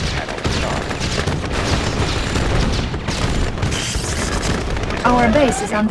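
Gunfire and explosions rumble in a continuous battle.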